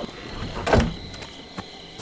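A wooden door opens with a creak.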